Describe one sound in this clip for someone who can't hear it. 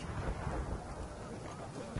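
A fire crackles close by.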